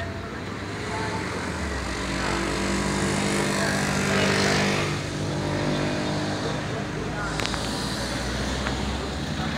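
Drums beat in a marching rhythm.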